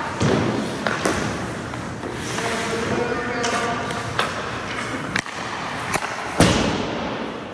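A hockey stick slaps a puck toward the net.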